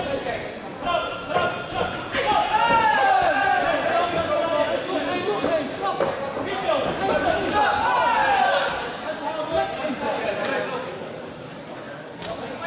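Gloves and kicks thud against bodies.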